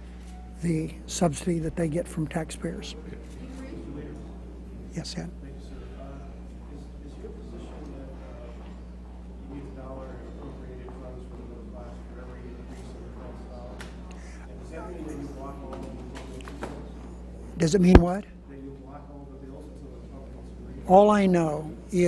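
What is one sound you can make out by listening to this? An elderly man speaks calmly into a microphone in a room with some echo.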